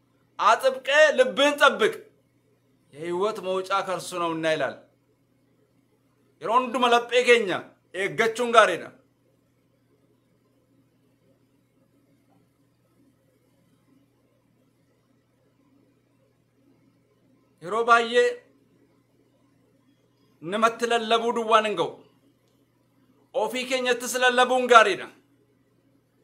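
A man speaks calmly and close by, in short phrases with long pauses.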